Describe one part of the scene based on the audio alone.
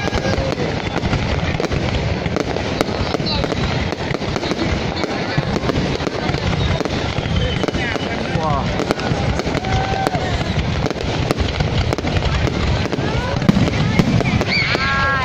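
Fireworks burst and crackle rapidly, one after another.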